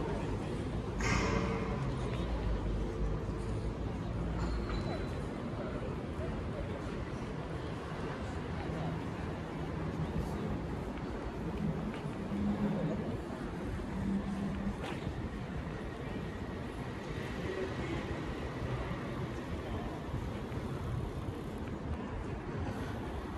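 Footsteps tap on stone paving outdoors.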